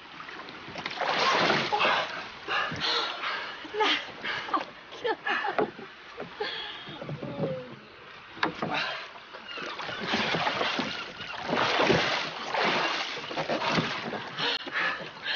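A man gasps and groans with effort.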